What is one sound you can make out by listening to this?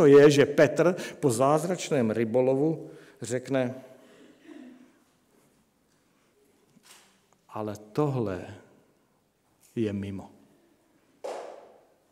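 A middle-aged man speaks with emphasis into a microphone, in pauses.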